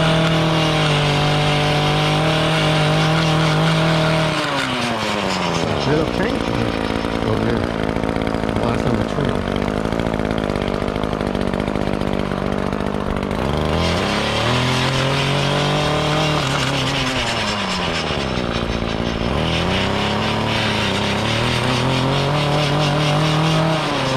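A string trimmer's engine whines loudly close by, its pitch rising and falling.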